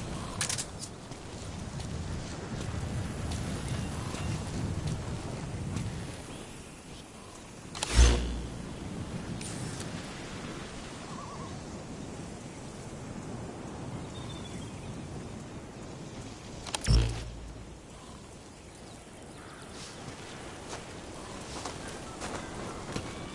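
Boots scrape and shuffle over dry gravel as a man crawls.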